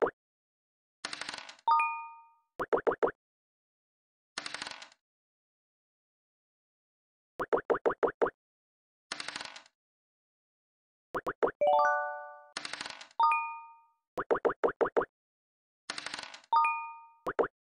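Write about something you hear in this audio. A die rattles as it rolls.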